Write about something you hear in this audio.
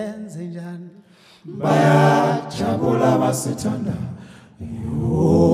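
A man sings with passion into a microphone.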